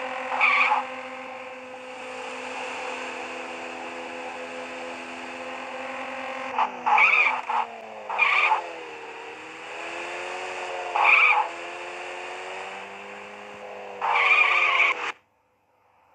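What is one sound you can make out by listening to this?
Tyres screech briefly several times.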